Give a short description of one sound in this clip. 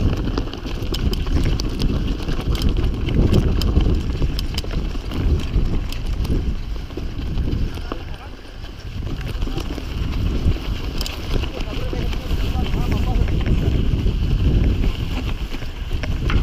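Bicycle tyres roll and rattle over a bumpy grassy trail.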